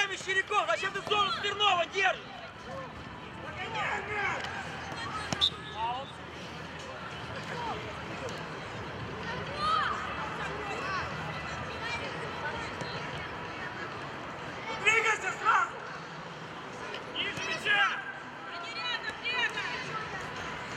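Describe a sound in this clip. Children shout and call out across an open playing field.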